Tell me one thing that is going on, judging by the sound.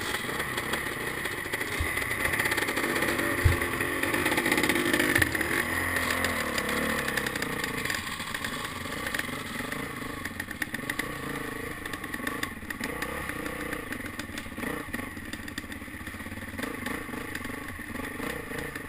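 A dirt bike engine revs and putters up close.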